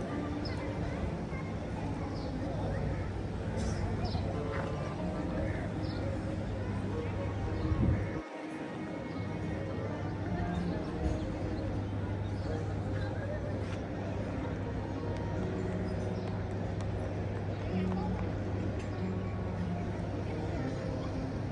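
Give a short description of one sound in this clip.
A busy outdoor crowd murmurs in the distance.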